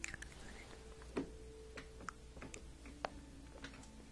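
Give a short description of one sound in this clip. A young woman whispers softly close to a microphone.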